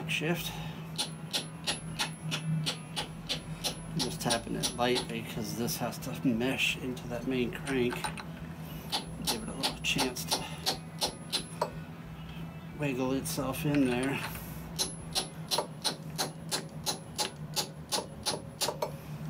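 A metal tool taps rapidly and repeatedly on a metal gear.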